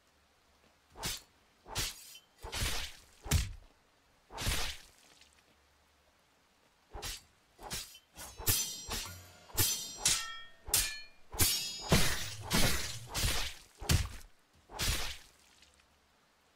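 A sword swishes through the air in quick, repeated swings.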